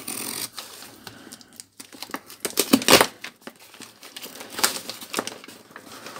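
Cardboard packaging rustles and scrapes as hands open a box.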